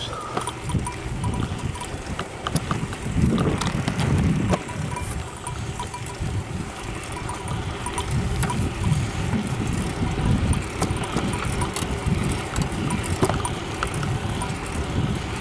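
A bicycle rattles and clicks over pavement.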